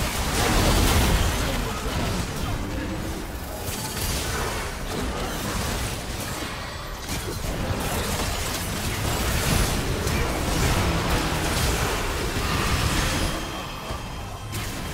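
Game spells and attacks crackle and boom in a fast fight.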